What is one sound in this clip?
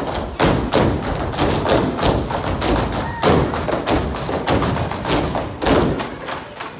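A dance team stomps in unison on a stage.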